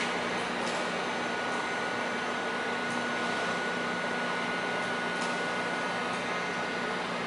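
A power drill whirs steadily.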